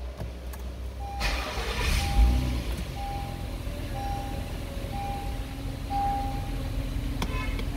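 A warning chime beeps repeatedly at an even pace.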